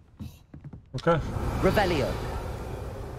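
A magic spell whooshes and shimmers with a rising, sparkling tone.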